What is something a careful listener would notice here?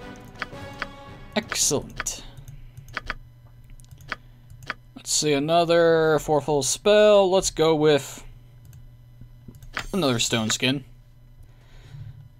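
Soft interface clicks sound as pages of a spell book are flipped.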